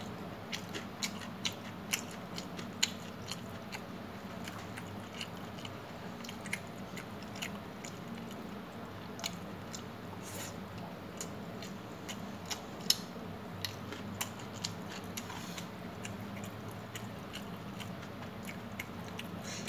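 Fingers squish and mix rice on a metal plate close up.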